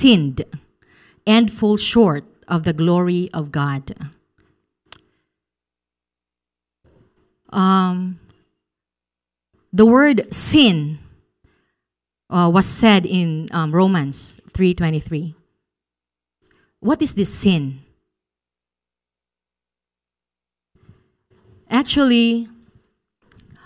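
A woman speaks into a microphone in short, calm phrases with long pauses.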